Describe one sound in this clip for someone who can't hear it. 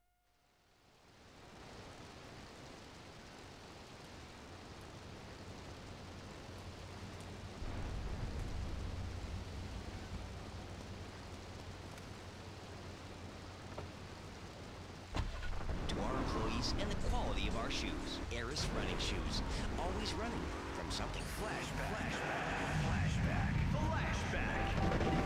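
Heavy rain falls steadily.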